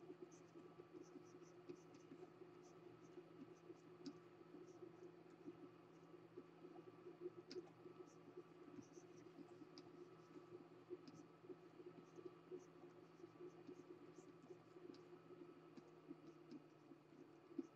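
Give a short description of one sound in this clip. A stylus taps and scratches softly on a drawing tablet.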